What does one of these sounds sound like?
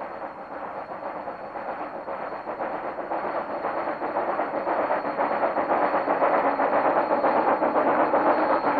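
A steam locomotive chuffs rhythmically as it approaches and grows louder.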